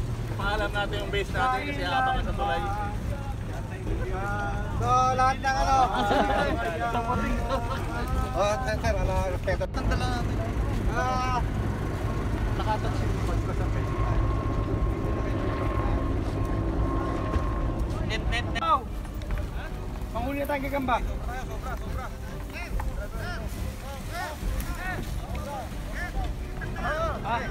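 Several men talk with animation nearby, outdoors.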